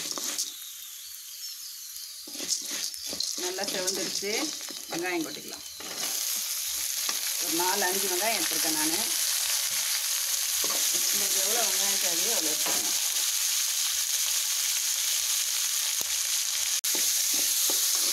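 Food sizzles loudly in hot oil.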